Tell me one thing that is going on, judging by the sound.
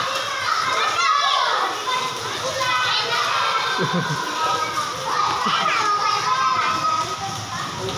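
Young children shout and squeal playfully close by.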